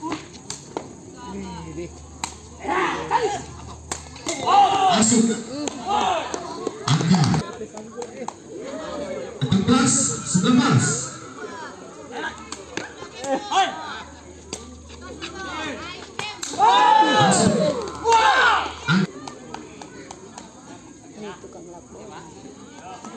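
Young men shout and cheer from a crowd outdoors.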